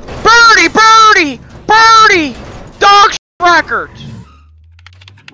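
A police siren yelps in short, rising and falling bursts.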